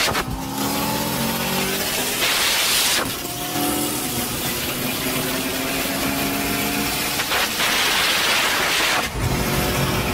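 A sports car engine roars loudly at high speed, rising and dropping in pitch as it shifts gears.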